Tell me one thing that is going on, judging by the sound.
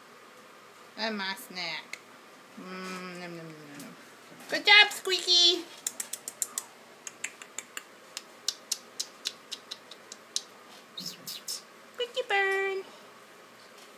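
A parrot squawks and chatters up close.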